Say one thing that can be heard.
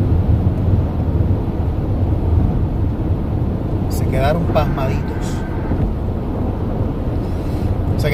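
A car's engine and tyres rumble steadily from inside the car.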